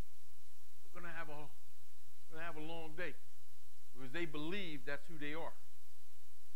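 A middle-aged man speaks in short bursts with pauses.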